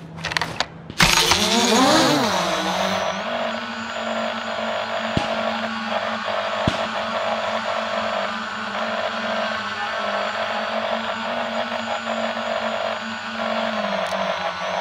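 A small drone's rotors whir steadily and loudly.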